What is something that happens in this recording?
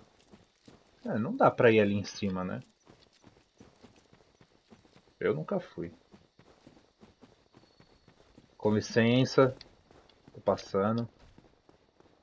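A young man talks with animation into a nearby microphone, in short bursts.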